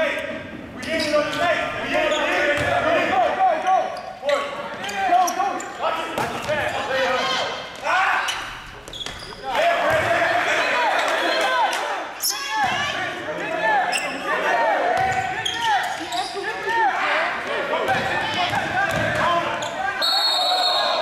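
Sneakers squeak sharply on a hard court in an echoing gym.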